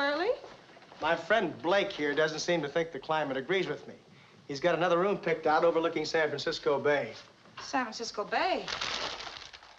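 A man speaks firmly close by.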